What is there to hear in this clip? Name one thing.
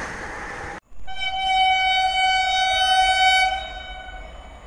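A train horn blares long and loud.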